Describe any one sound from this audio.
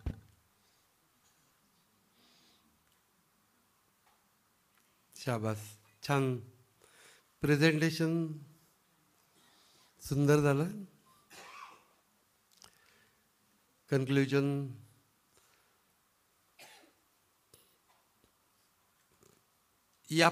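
A middle-aged man speaks slowly and calmly into a microphone, with long pauses.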